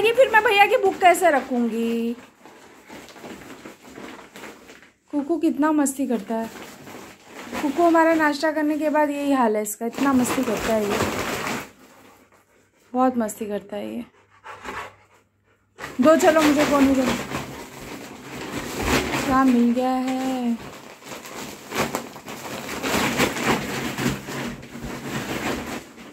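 A dog rustles and crinkles a large plastic sack.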